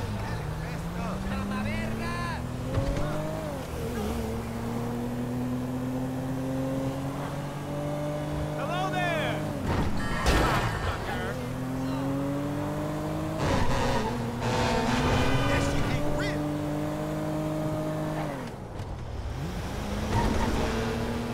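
A car engine hums and revs, rising and falling as the car changes gear.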